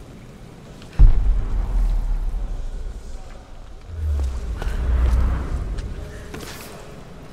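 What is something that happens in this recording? A deep rumble of falling rock booms suddenly and slowly fades.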